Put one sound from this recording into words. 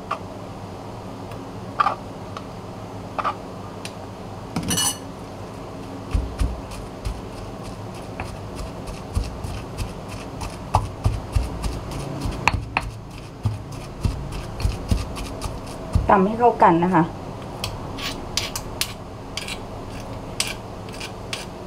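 A metal spoon scrapes against a stone mortar.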